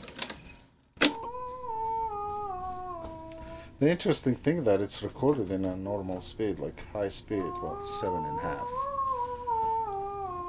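A reel-to-reel tape recorder plays back wavering musical tones.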